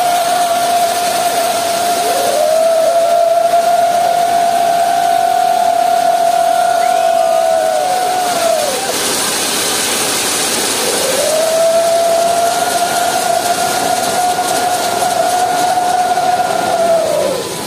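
Fireworks hiss and crackle loudly.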